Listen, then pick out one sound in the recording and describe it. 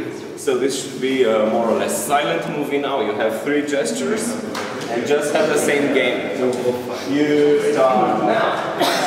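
A man speaks with animation to a group close by.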